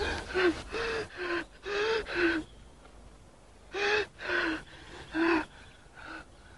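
A man sobs and groans in pain nearby.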